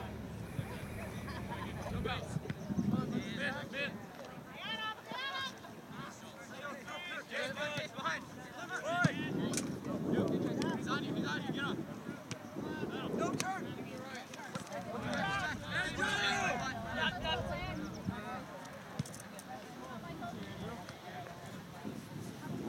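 Men and women on the sidelines chat and call out nearby, outdoors.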